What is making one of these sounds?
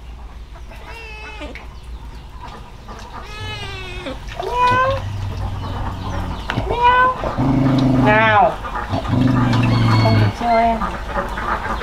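Kittens meow repeatedly close by.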